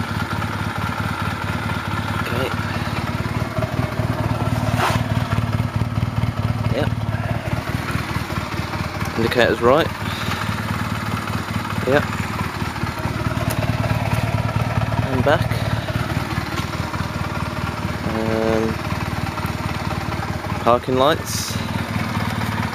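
A motorcycle engine idles steadily nearby.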